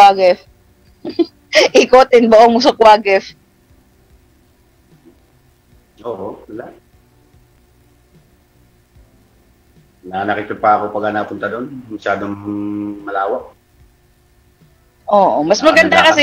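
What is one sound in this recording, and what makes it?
A middle-aged woman laughs and talks over an online call.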